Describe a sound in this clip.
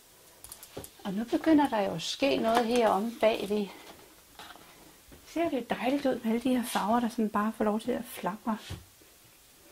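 A woman speaks calmly and warmly into a close microphone.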